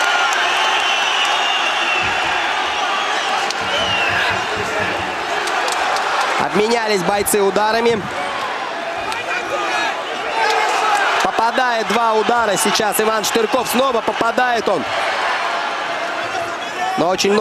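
A large crowd roars and cheers in an echoing arena.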